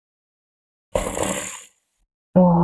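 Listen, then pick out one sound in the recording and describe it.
Soup pours and splashes onto rice.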